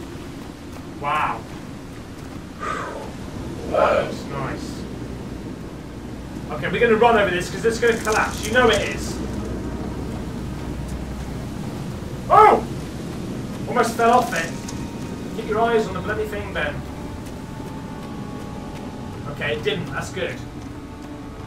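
A young man talks in short bursts, heard close.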